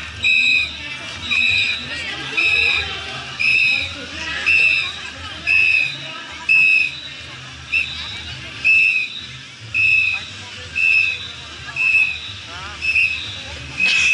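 A crowd of onlookers murmurs outdoors.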